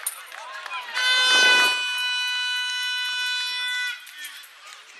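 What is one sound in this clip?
A referee's whistle blows long and steady.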